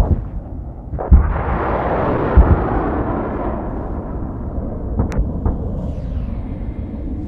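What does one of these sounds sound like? A jet aircraft roars past overhead.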